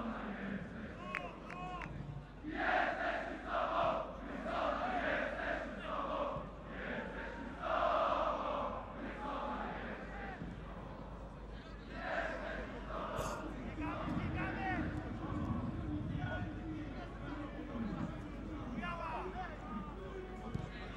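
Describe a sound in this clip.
A large stadium crowd murmurs and chants in the background.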